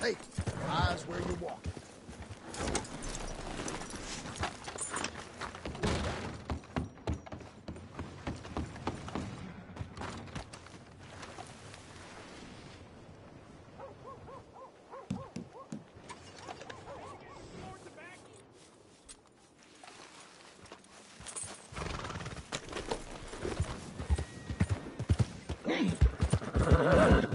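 A horse's hooves clop on a dirt road.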